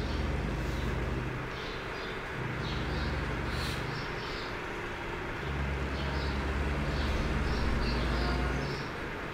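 A truck engine rumbles steadily, rising and falling in pitch.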